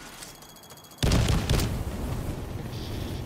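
An explosion booms nearby and rumbles away.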